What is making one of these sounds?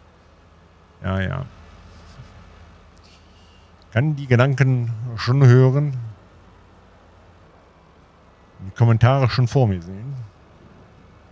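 A man talks calmly in short bursts into a close microphone.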